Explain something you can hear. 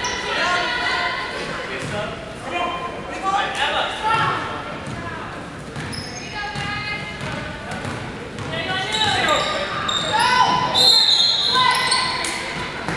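Young women call out to each other in a large echoing hall.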